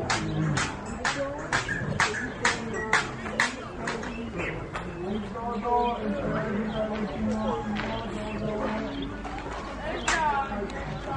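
A baby monkey squeaks and cries close by.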